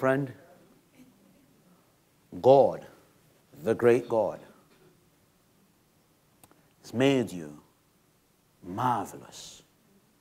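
A man speaks in short, emphatic phrases with pauses, in a room with a slight echo.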